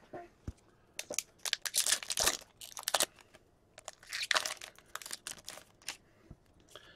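A plastic wrapper crinkles and rustles in someone's hands.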